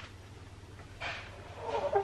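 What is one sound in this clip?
A gloved hand rubs and taps against a plastic mould.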